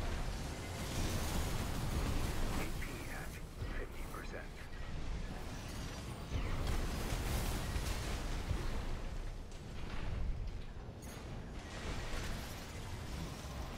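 Energy weapons fire in sharp whooshing bursts.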